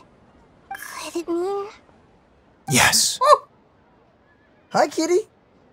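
A young man speaks with animation, close to a microphone.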